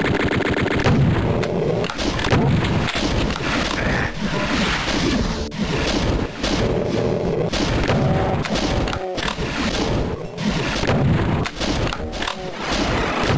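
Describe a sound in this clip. A man talks with animation through a headset microphone.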